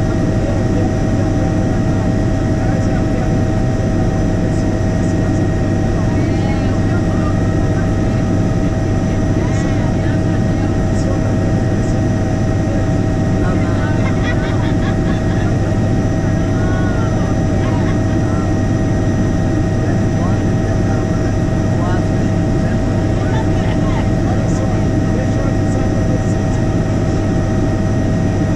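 A man talks over a headset intercom.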